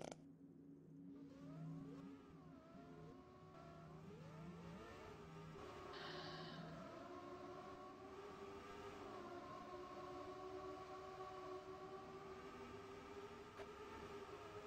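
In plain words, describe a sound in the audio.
Racing car engines whine and rev, rising and falling in pitch.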